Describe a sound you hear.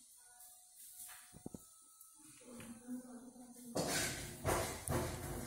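Soft dough balls drop with light taps into a metal bowl.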